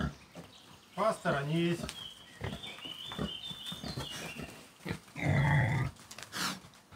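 Pigs grunt and snort close by.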